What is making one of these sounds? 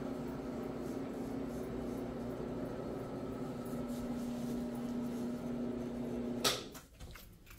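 A floor scrubbing machine hums steadily.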